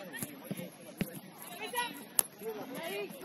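A soccer ball is kicked with a dull thud.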